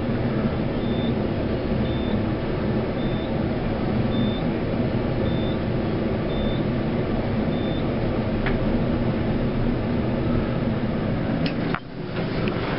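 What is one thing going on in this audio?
An elevator car hums steadily as it rises.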